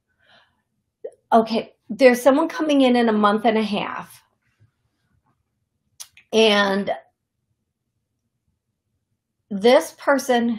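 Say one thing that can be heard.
A woman speaks with animation close to a microphone, in short bursts with pauses.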